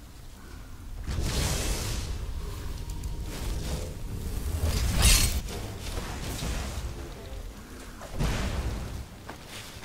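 A magic spell blasts with a loud crackling whoosh.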